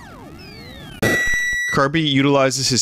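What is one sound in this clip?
A sharp electronic burst sounds as a game character is hit.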